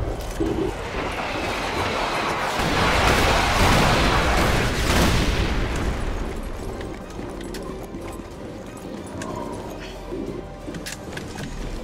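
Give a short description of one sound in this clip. Footsteps crunch on snowy stone as a soldier runs.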